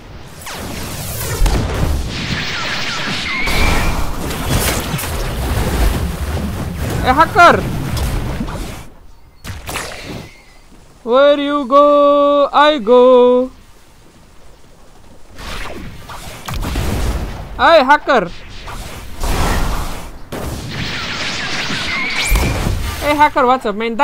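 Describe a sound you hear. Video game attacks whoosh and crash with bursts of noise.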